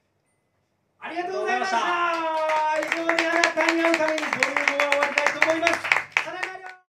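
Several young men sing together loudly through microphones.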